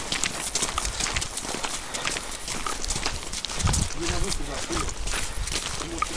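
Footsteps crunch quickly on rough ground close by.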